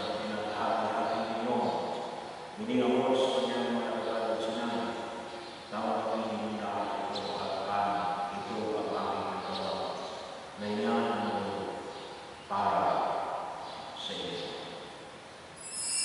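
A man speaks calmly through a microphone in a large echoing hall.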